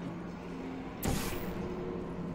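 A sci-fi energy gun fires with a sharp zap.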